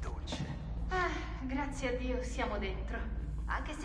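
A young woman speaks.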